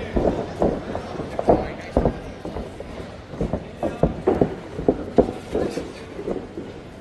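Shoes scuff and thud on a boxing ring floor.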